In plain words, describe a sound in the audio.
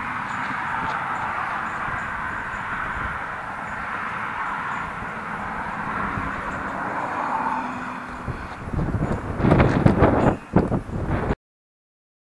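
A lawn mower engine runs nearby.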